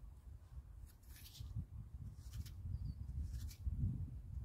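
A rake scrapes through sand.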